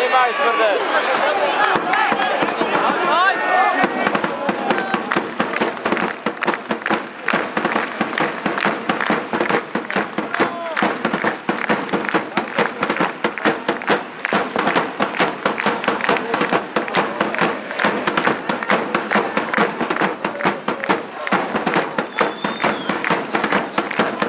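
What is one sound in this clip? A large crowd cheers and chants in a large indoor arena.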